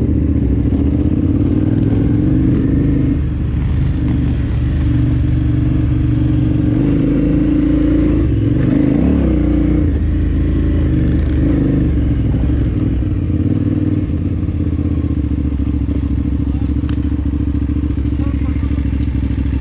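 A motorcycle engine hums and revs steadily close by.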